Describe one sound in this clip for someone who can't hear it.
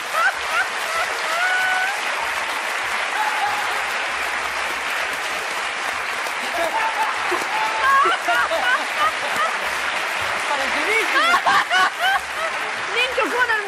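Women laugh heartily close by.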